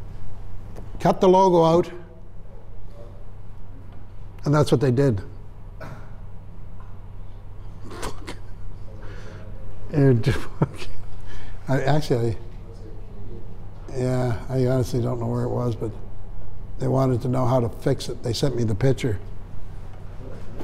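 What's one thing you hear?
An elderly man speaks calmly in a room, with pauses.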